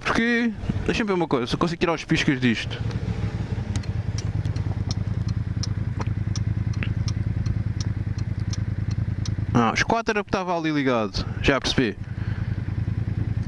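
A scooter engine idles with a steady low hum.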